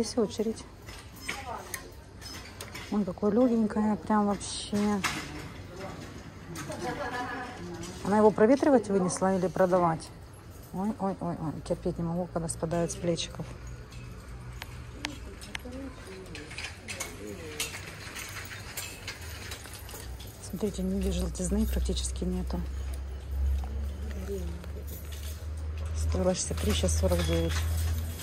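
Clothes hangers click and scrape along a metal rail.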